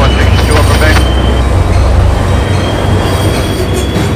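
A train engine rumbles past close by.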